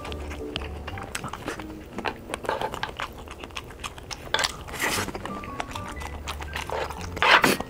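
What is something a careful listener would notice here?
A young man chews food noisily close to a microphone.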